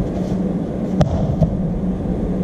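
Feet thump and shuffle on a mat.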